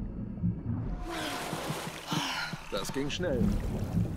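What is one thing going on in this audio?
Water splashes as a swimmer breaks the surface.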